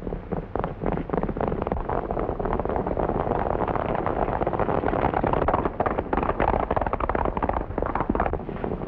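Horses gallop with rapid hoofbeats on a dirt track.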